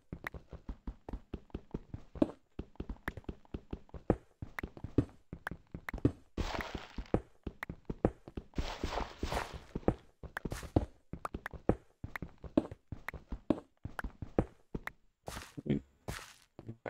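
A pickaxe taps rapidly at stone blocks.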